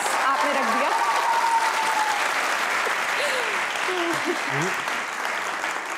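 A crowd applauds and cheers loudly.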